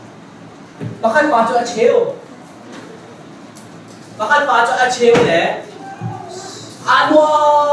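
A man speaks loudly and with animation in a room with a slight echo.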